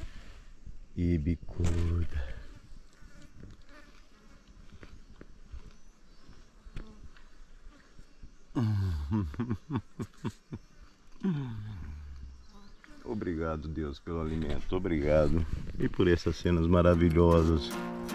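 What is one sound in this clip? A middle-aged man speaks with animation close to the microphone outdoors.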